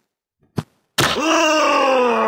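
A toy gun fires with a sharp pop.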